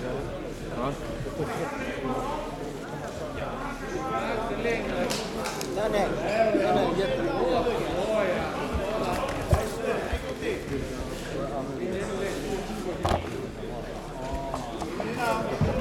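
A crowd of men talk and call out in a large echoing hall.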